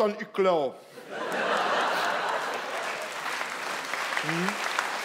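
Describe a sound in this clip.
An audience laughs and applauds loudly in a large hall.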